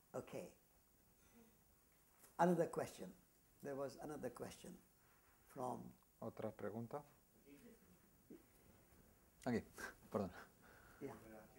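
An elderly man speaks calmly and warmly, close by.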